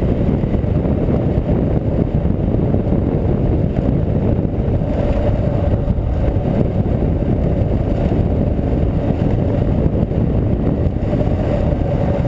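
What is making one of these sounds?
Tyres crunch over a loose gravel track.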